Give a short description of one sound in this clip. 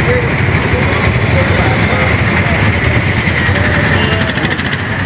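Dense traffic rumbles and idles close by outdoors.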